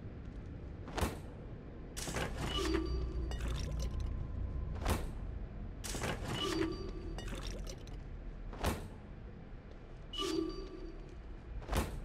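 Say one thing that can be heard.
A fist bangs hard against a metal vending machine, again and again.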